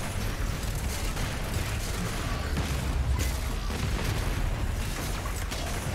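Explosions boom and roar with fire.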